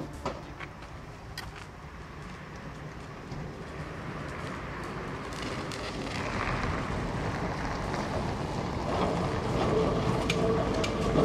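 A tram rumbles along its rails, growing louder as it approaches.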